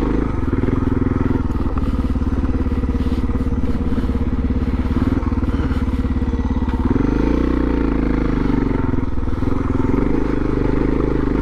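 Tyres crunch over loose gravel.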